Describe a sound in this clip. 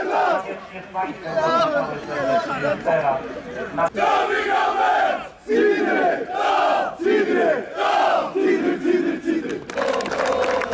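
A group of men chant loudly together outdoors.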